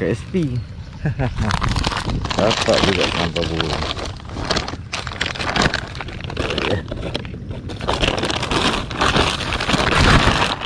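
A plastic wrapper crinkles and rustles between hands.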